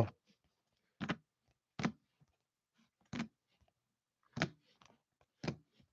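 Hard plastic card cases clack softly against each other.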